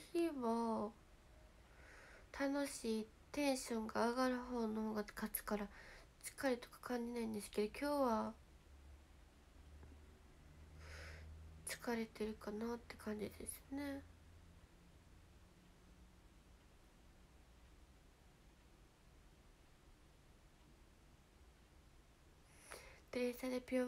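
A young woman speaks softly and close to a microphone, in short bursts with pauses.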